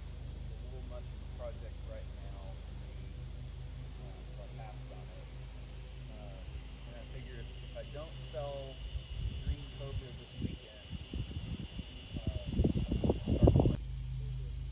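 Men talk calmly nearby outdoors.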